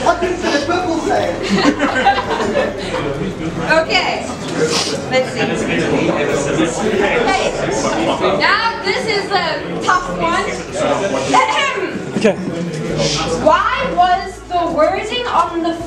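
A young woman speaks cheerfully up close.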